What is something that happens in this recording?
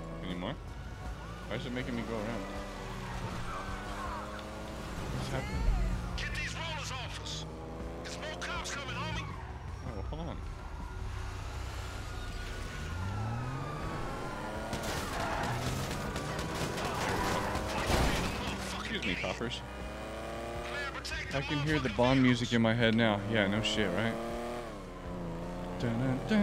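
A car engine revs and hums.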